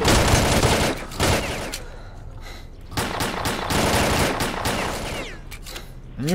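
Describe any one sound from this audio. Pistol shots ring out loudly, one after another.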